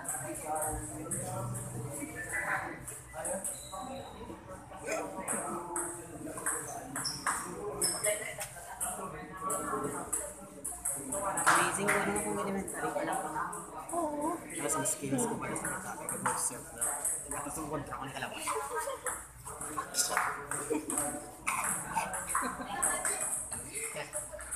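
Young people chatter nearby in an echoing hall.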